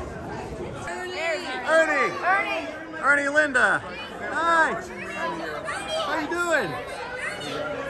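Women shriek and cheer excitedly close by.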